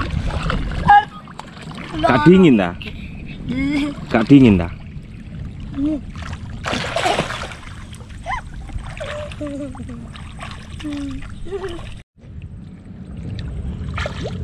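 Water splashes as children wade and play.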